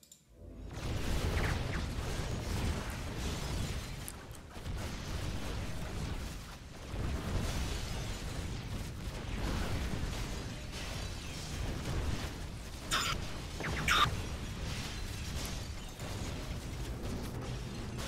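Video game battle sounds clash, zap and explode.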